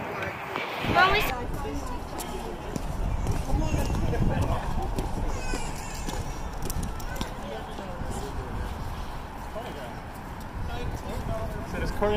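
Children shout and laugh while playing.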